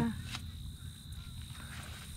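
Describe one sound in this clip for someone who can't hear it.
A hoe scrapes and digs into dry soil.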